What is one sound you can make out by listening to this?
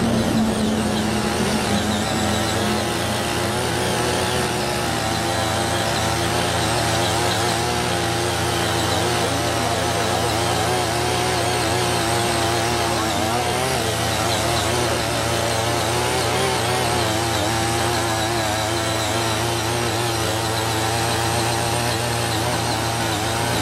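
A second tiller engine drones a little farther off.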